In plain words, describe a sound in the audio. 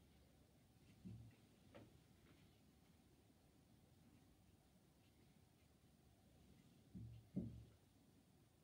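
Small objects knock softly against a hard surface.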